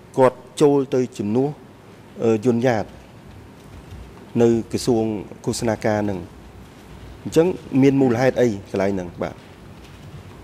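A middle-aged man speaks steadily into a microphone in pauses.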